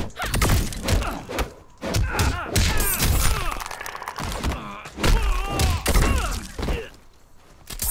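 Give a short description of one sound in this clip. Punches and kicks thud heavily in a fight.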